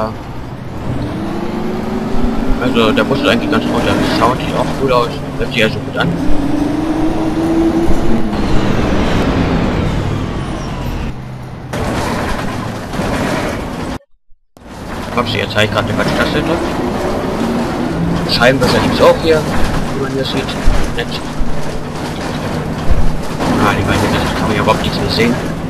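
A bus engine hums and rises and falls in pitch as the bus drives.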